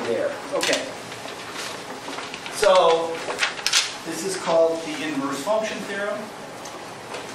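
A man speaks in a lecturing tone.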